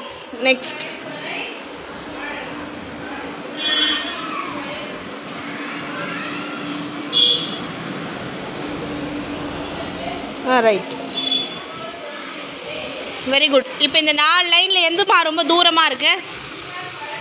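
Young children shout and call out loudly nearby.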